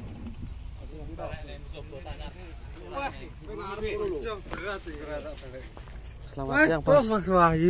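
Men talk casually nearby, outdoors.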